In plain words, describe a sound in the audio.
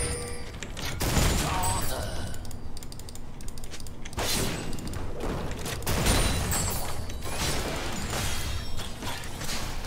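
Magic spells whoosh and crackle in bursts during a video game fight.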